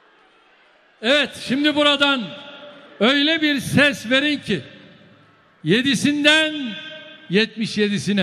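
A man speaks forcefully through loudspeakers in a large echoing hall.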